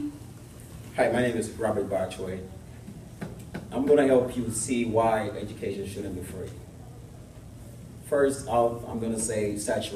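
A man speaks calmly to a room.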